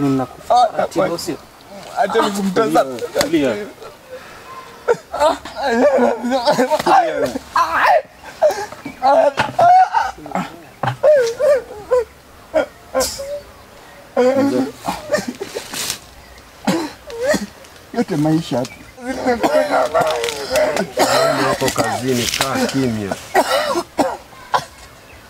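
A young man talks and laughs close by, with animation.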